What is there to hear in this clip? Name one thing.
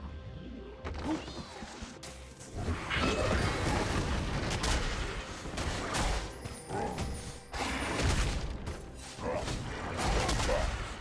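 Magic spells whoosh and burst in a video game fight.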